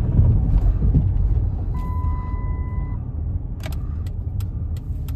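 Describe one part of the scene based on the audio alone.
Tyres rumble on a wet road.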